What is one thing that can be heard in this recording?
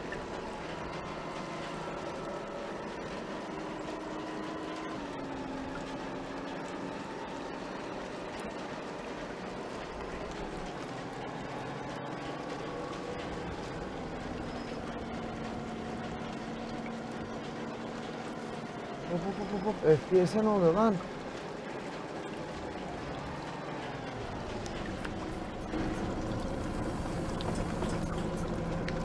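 A bus engine hums steadily, rising and falling in pitch as the bus drives.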